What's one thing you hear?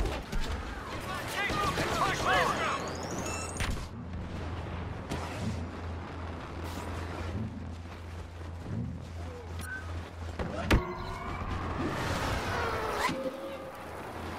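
Laser bolts zip and crackle overhead.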